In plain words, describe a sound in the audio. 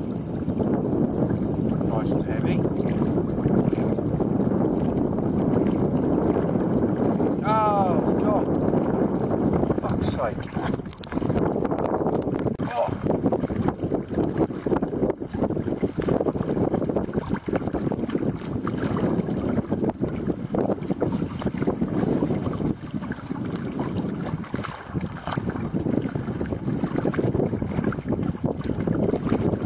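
Wind buffets a microphone outdoors on open water.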